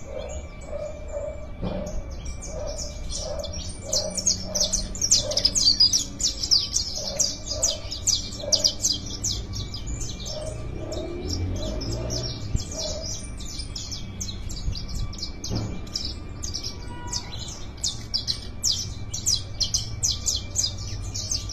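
Caged canaries sing rapid, trilling songs close by.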